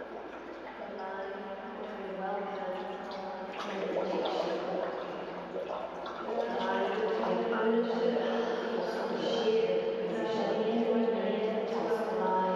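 A woman hums steady, drawn-out tones.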